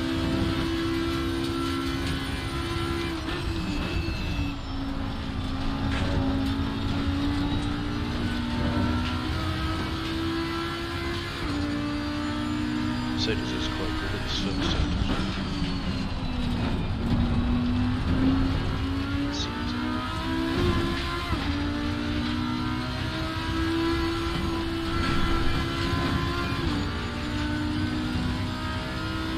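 A race car engine roars, rising and falling in pitch as gears shift.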